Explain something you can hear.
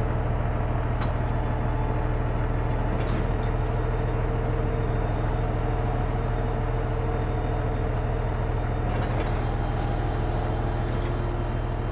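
A folding farm implement whirs and clanks as it unfolds.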